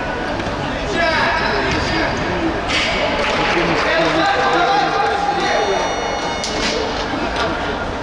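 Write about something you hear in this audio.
Men shout excitedly in an echoing indoor hall.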